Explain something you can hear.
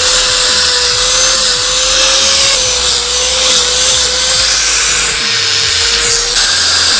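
An electric sander whines steadily as it sands wood.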